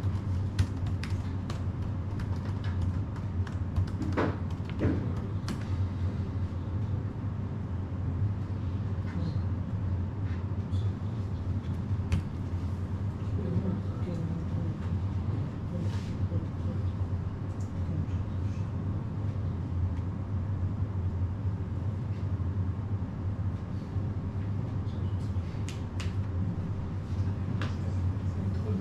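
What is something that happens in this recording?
A man types on a laptop keyboard with quick, light clicks.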